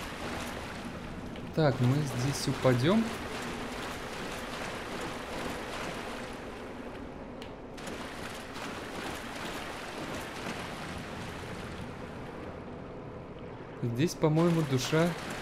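Armoured footsteps run and splash over wet stone.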